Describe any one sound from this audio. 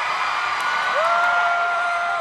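A young woman sings a long held note through a microphone.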